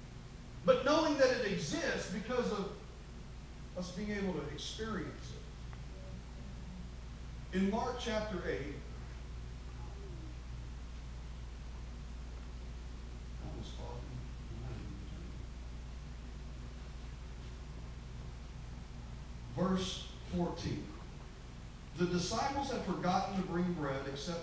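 A man speaks through a microphone in an echoing hall, pausing now and then.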